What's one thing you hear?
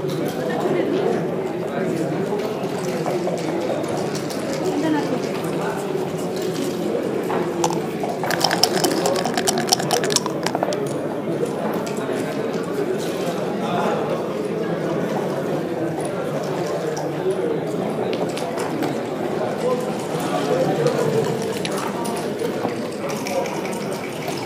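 Plastic checkers click as they are moved on a wooden board.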